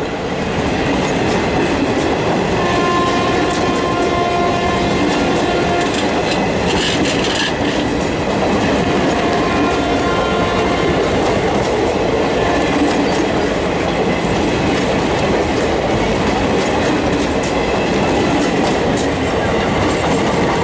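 Passenger train coaches roll past close by with a loud rushing roar.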